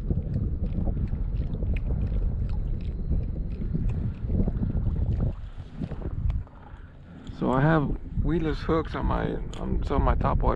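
Small waves lap against a kayak.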